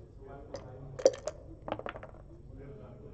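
Dice rattle and clatter onto a wooden board.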